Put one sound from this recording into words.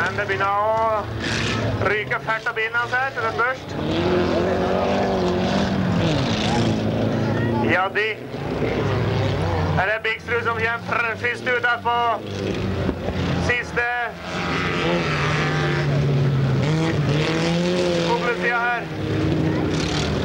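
Race car engines roar and rev loudly.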